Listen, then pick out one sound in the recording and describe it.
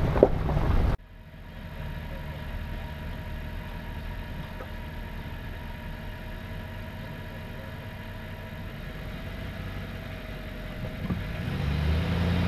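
A vehicle engine idles quietly.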